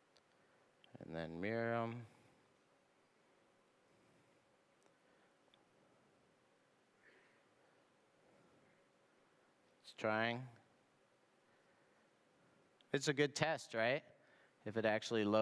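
A man speaks into a microphone in short bursts, with pauses between them.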